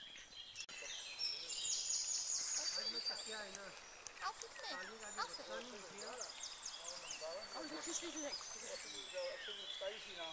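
A baby bird peeps in high, repeated chirps.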